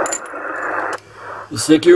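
A man speaks briefly into a radio microphone, close by.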